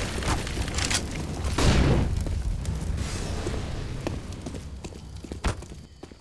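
A rifle fires a burst of loud shots.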